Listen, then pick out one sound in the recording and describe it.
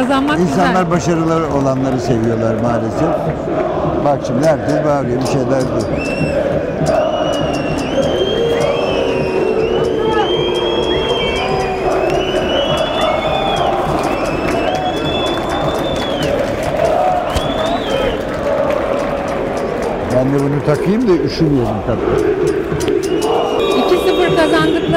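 A crowd chants and sings in a large open stadium.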